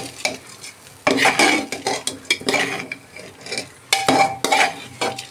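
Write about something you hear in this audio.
A metal spoon scrapes and clinks against a metal pot while stirring rice.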